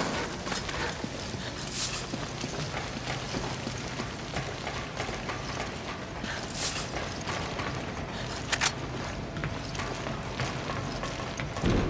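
Footsteps clank on a metal grating floor.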